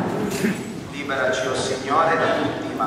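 A man's voice chants through a microphone, echoing in a large hall.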